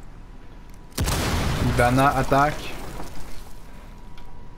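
An explosion bursts loudly and then rumbles away.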